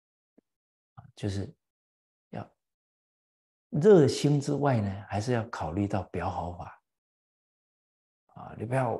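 An elderly man speaks calmly and clearly into a microphone, with pauses.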